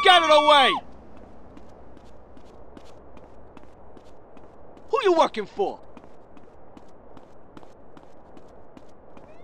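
Footsteps run quickly and evenly.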